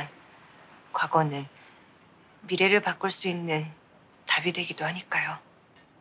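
A young woman speaks earnestly and close by.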